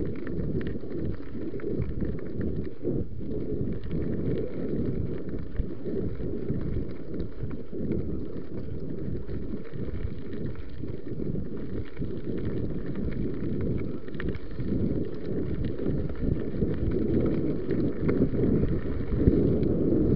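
A bicycle frame rattles over bumps.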